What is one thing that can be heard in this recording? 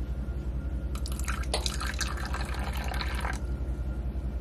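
Water pours from a bottle into a cup.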